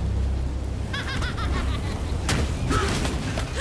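Magic blasts burst with sharp cracks and a bright sizzle.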